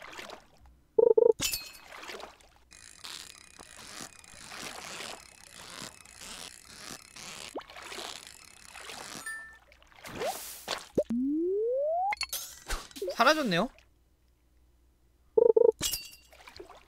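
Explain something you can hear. A short bright chime rings out as a fish bites.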